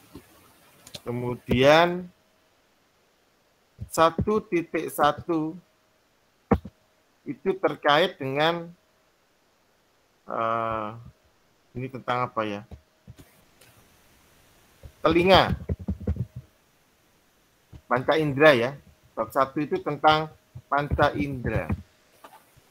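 A young man speaks calmly in short phrases into a close microphone.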